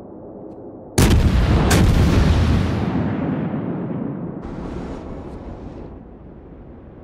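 A warship's big guns fire with a deep, booming blast that rolls away.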